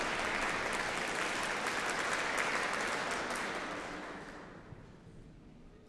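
An audience applauds in a large echoing hall, then the clapping dies away.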